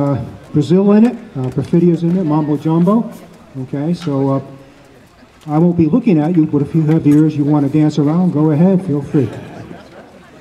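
A man speaks calmly into a microphone, heard through a loudspeaker outdoors.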